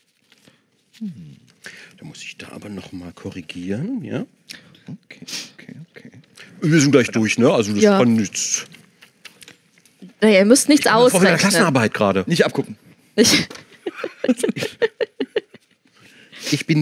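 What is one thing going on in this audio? A man speaks animatedly into a close microphone.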